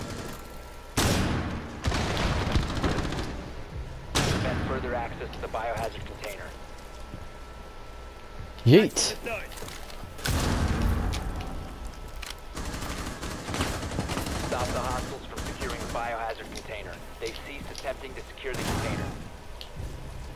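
Gunfire rattles in short, loud bursts.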